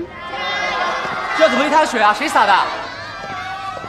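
A crowd of young people cheers and shouts loudly.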